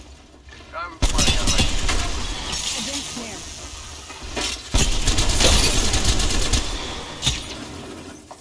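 A rifle fires bursts of shots.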